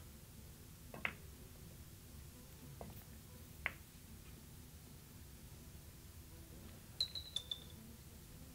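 Billiard balls click sharply against each other and knock against the table cushions.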